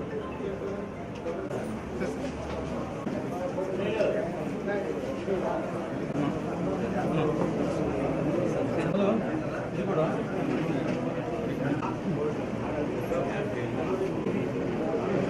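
A crowd of men talk over one another nearby.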